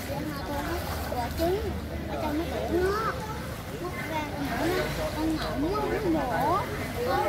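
Water splashes as a child kicks nearby.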